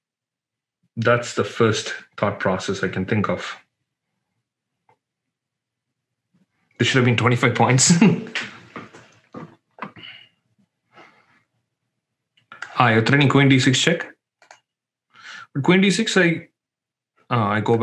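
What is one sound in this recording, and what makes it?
A man speaks calmly and clearly into a close microphone, in bursts with pauses.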